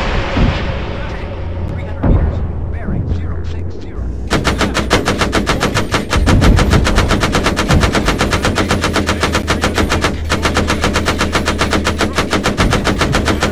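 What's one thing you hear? Heavy explosions boom and rumble.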